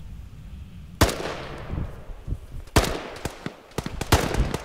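A rifle fires sharp, loud shots that echo away.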